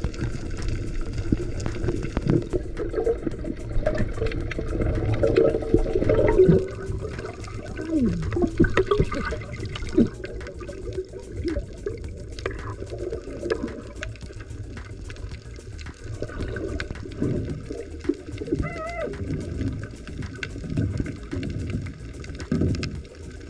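Water rumbles and gurgles steadily, heard muffled from underwater.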